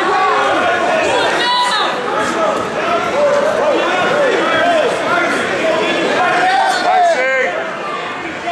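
People shout and cheer in an echoing gym.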